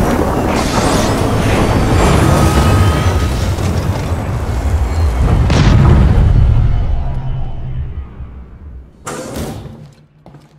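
A spaceship's engines roar with a deep rumble, then fade away.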